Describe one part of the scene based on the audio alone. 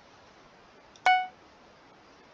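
A short chime rings once as an item is sold.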